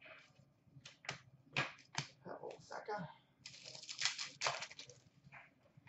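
Cards rustle and tap softly as they are shuffled by hand.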